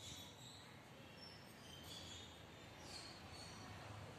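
A small dog growls and yaps.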